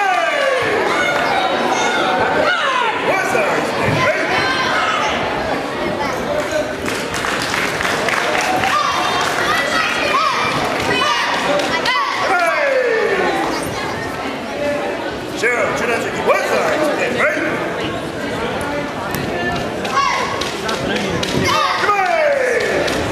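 A crowd of children and adults chatters and calls out in a large echoing hall.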